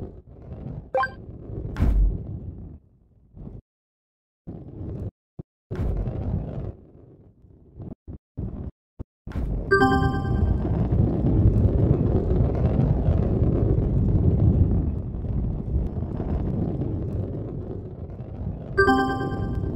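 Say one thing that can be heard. A bright game chime rings.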